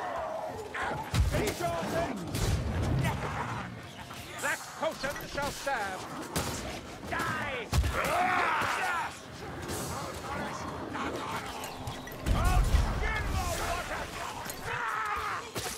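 A sword strikes with heavy thuds.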